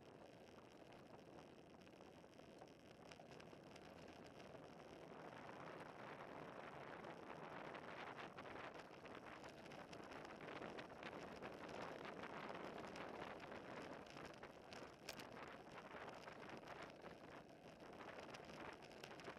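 Bicycle tyres hum on the road surface.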